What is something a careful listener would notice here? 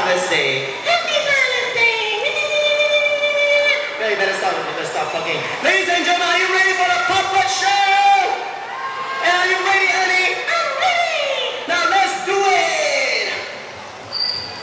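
A man speaks in a high, squeaky puppet voice through a loudspeaker, with animation.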